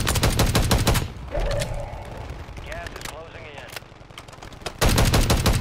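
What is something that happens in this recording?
A rifle magazine clicks and clacks during a reload.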